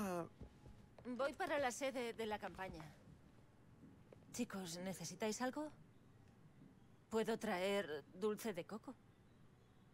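A woman speaks calmly and kindly.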